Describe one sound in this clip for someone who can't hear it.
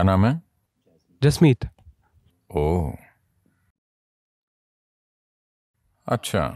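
An elderly man speaks calmly and slowly, with long pauses.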